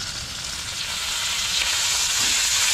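Meat sizzles loudly in a hot pan.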